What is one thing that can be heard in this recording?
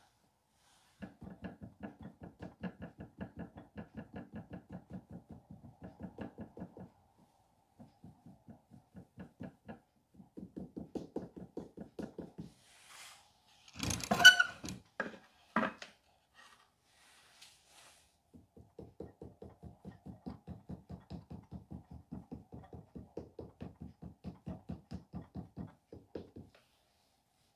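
A tool rapidly pats and thumps against damp clay.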